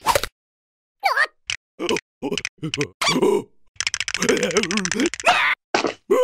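Small cartoon creatures squeal and jabber in high, excited voices.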